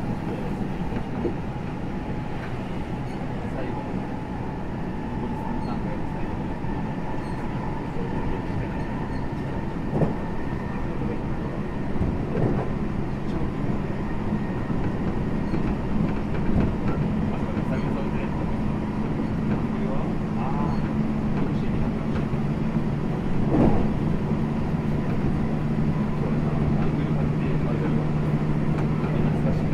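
An electric commuter train hums as it stands at a platform.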